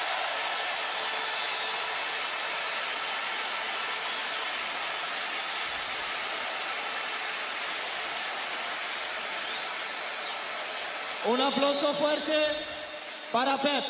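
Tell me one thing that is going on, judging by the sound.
A large crowd cheers loudly in a huge open stadium.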